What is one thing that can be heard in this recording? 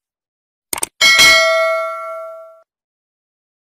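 A small bell chimes once and rings out.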